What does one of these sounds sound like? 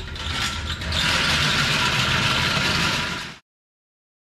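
A whiteboard rolls across the floor.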